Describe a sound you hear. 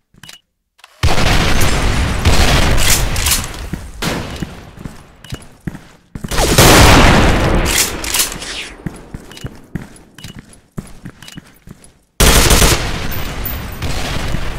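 Gunshots ring out loudly.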